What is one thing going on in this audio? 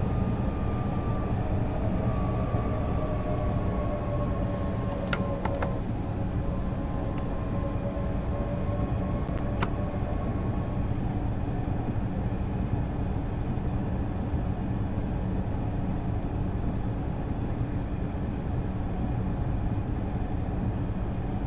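An electric train's motors hum and rumble steadily as it runs along the track.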